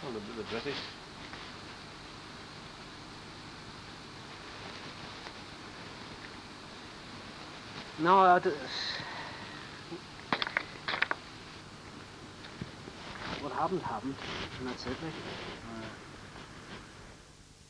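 An older man speaks close by, outdoors.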